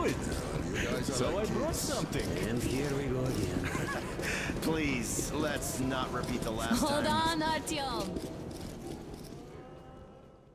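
Several men talk and laugh loudly in a noisy crowd.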